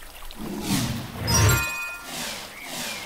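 Sparkling chimes ring.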